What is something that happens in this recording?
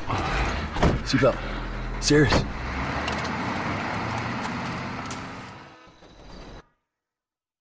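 A truck engine rumbles and drives away, fading.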